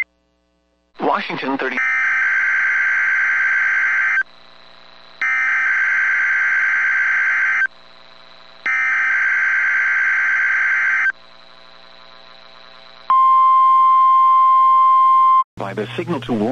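Loud electronic alert tones blare in bursts over a broadcast.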